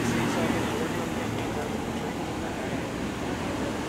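A car drives past on the street.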